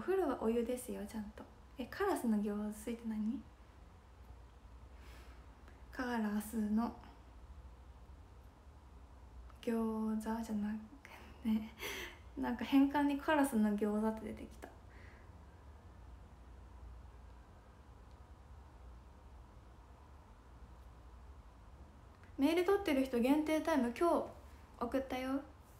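A young woman talks cheerfully and close up, in short bursts with pauses.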